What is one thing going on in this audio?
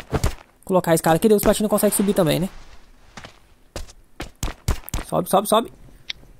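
Footsteps clatter on a wooden ladder.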